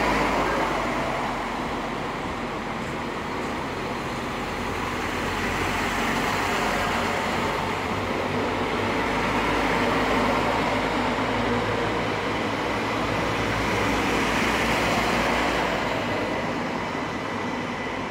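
A train rumbles and clatters along the rails close by.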